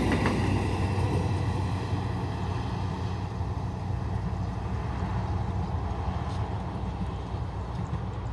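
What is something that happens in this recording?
A train's rumble fades into the distance.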